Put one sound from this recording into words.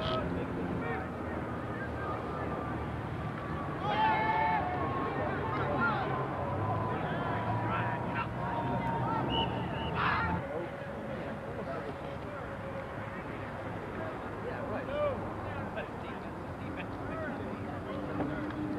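A crowd of spectators chatters and cheers outdoors.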